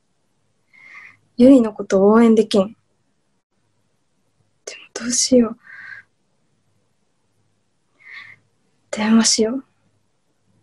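A young woman speaks in short bursts over an online call.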